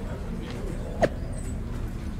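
A phone notification chimes briefly.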